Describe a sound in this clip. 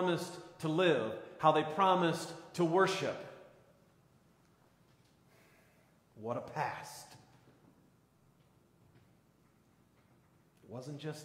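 A man speaks with animation through a microphone, pausing between phrases, in a reverberant hall.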